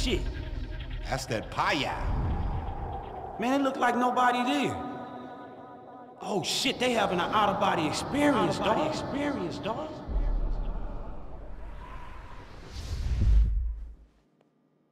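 A man speaks casually and with animation.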